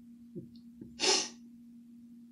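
A young man chuckles softly.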